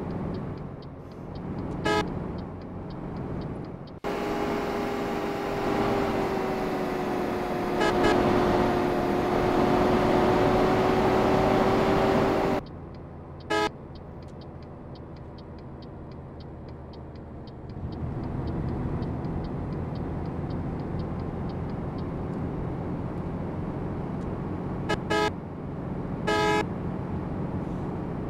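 A bus engine drones steadily, louder for a stretch in the middle.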